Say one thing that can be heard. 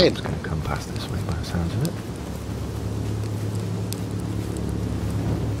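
A fire crackles and hisses nearby.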